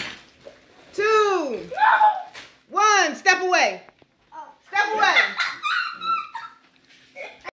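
A young child talks excitedly close by, with a high, rising and falling voice.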